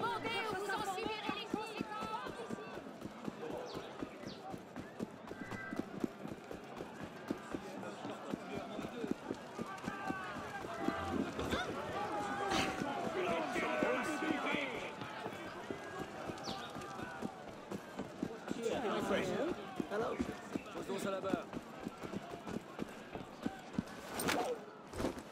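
Quick footsteps run over cobblestones.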